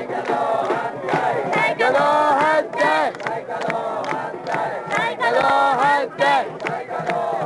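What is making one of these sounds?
A large crowd of men and women shouts and chants loudly outdoors.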